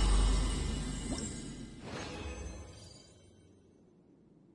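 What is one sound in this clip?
A bright, shimmering game chime rings out and fades away.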